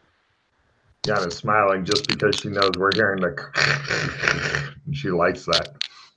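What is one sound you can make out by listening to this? A woman speaks and laughs over an online call.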